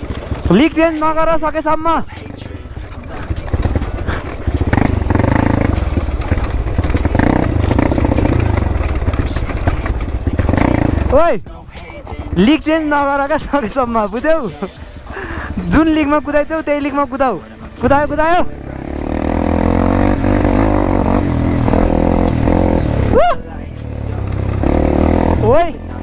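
A dirt bike engine rumbles close by and revs up sharply at times.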